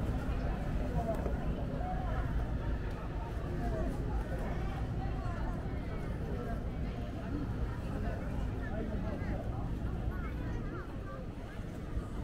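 A crowd of people chatter all around outdoors.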